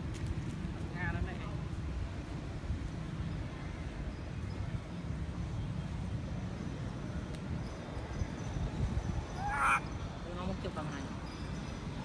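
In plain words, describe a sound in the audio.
A baby monkey squeaks and cries softly.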